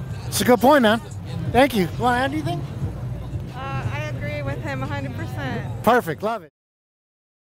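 A crowd of protesters chants loudly outdoors.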